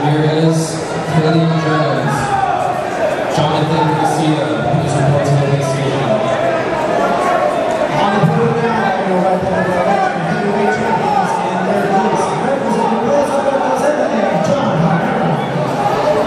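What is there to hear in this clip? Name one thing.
A man shouts loudly from close by.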